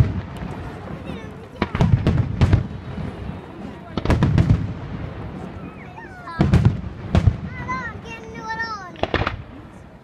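Firework rockets whistle as they rise.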